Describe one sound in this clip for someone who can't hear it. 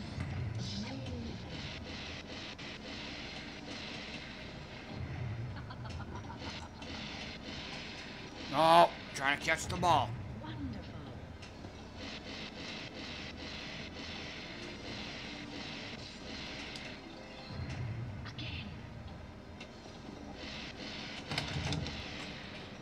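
A pinball machine clicks and rattles as the ball bounces around.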